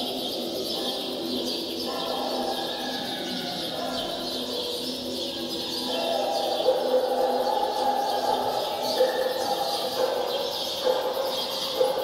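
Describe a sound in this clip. A piano plays a slow melody in a large room.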